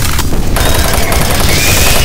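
A gun fires.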